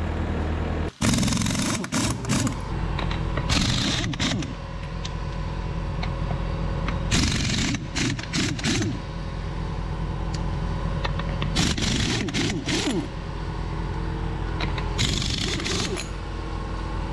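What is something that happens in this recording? An impact wrench whirs and rattles in short, loud bursts.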